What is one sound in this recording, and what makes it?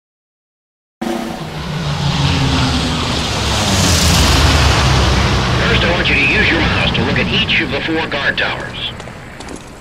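Propeller planes roar loudly overhead and fade away.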